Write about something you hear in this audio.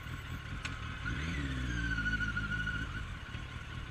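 A motorcycle engine revs up briefly.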